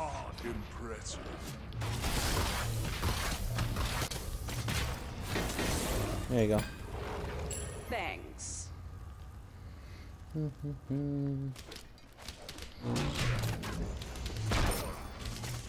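Blows land with sharp thuds and crashes in a fast fight.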